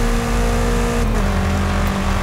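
A car engine's pitch drops briefly as it shifts up a gear.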